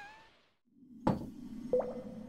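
A game character lands with a dull thud on a new cave floor.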